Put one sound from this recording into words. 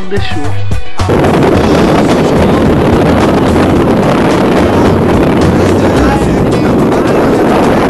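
Wind blows hard against the microphone.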